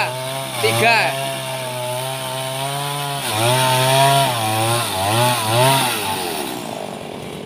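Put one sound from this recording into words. A small two-stroke chainsaw revs as it cuts through a log.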